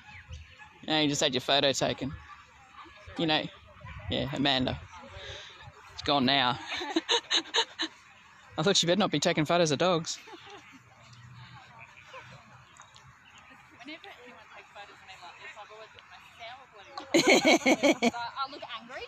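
A small dog barks excitedly, close by.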